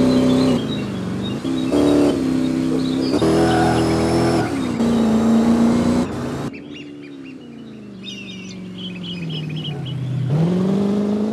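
A sports car engine roars and revs up and down as the car speeds along.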